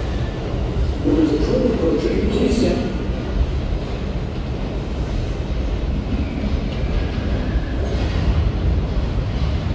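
A subway train rumbles as it approaches through a tunnel.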